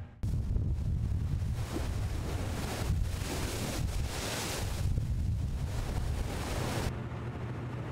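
Churning water foams and splashes along a ship's hull.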